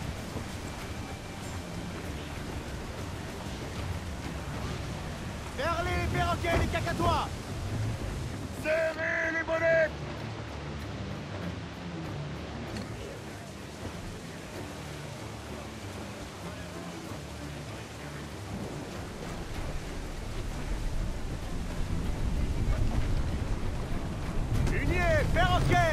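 Waves crash and wash against a ship's hull.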